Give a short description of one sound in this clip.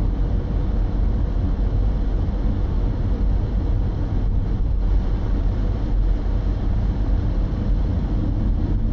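A car interior hums with a low, steady engine and road rumble as it drives along.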